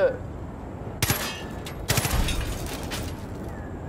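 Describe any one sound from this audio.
Gunshots crack sharply in quick bursts.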